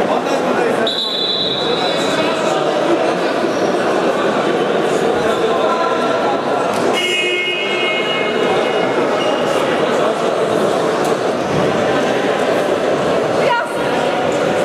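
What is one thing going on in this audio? Men talk among themselves nearby in a large echoing hall.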